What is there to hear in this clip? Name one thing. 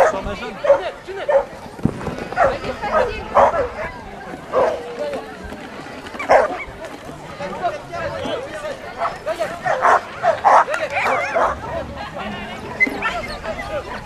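A woman calls out commands to a dog.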